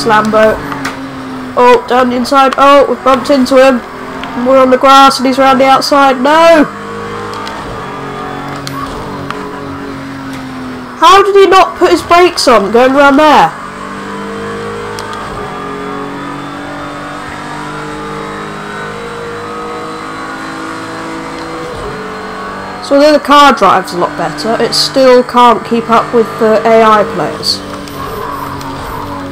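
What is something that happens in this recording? A racing car engine roars steadily, its pitch rising and dropping with gear changes.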